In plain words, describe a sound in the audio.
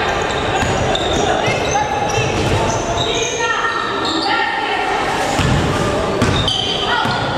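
A crowd of spectators murmurs and calls out in the background.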